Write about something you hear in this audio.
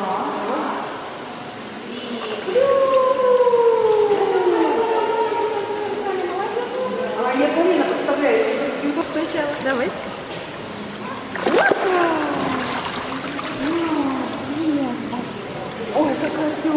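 A young woman talks and sings playfully to a baby, close by in an echoing hall.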